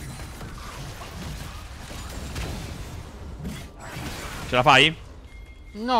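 Game spell effects crackle and whoosh.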